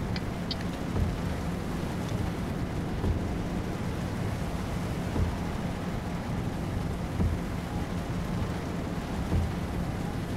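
Windshield wipers sweep back and forth with a regular thump.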